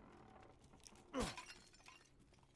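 A clay vase smashes and shatters.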